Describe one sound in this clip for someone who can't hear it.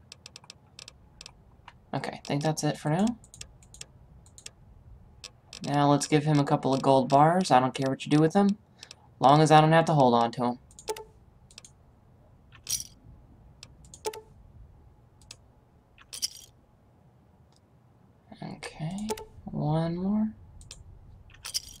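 Short electronic clicks tick as a menu is scrolled.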